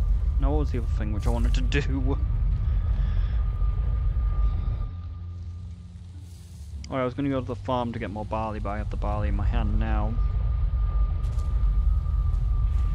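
A fire roars and crackles close by.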